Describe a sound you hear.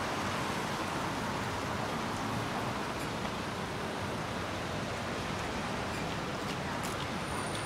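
Car tyres hiss over a wet road.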